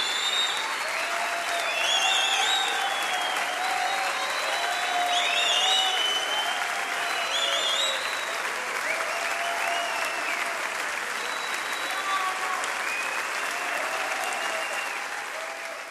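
A large crowd applauds steadily in a big hall.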